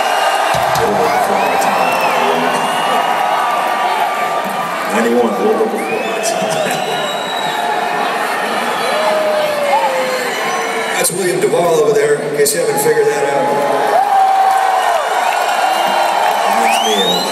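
People in a crowd whistle loudly.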